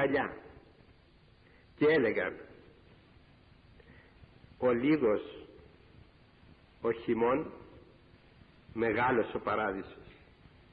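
An elderly man speaks slowly through a microphone in short phrases, with echo in a large hall.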